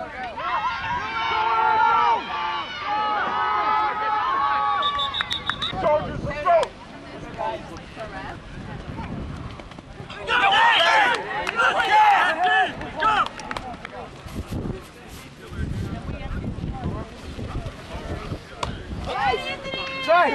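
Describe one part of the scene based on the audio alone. Several men talk and shout nearby outdoors.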